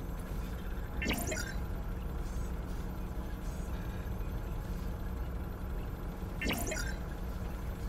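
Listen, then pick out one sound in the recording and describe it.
A computer terminal gives a short error sound.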